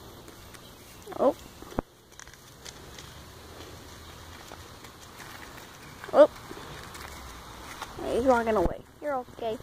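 A donkey sniffs and snuffles close by.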